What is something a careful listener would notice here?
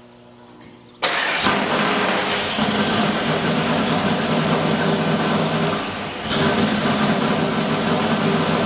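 A car engine starts and idles with a loud, rough rumble.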